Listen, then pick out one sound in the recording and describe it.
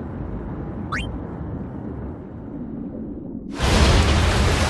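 Muffled water rumbles underwater.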